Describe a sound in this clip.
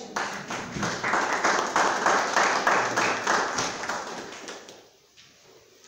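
A group of people claps in a room.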